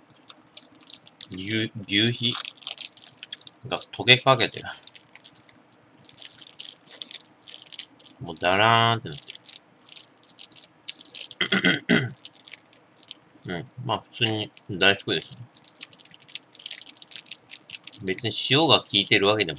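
A plastic wrapper crinkles in a hand.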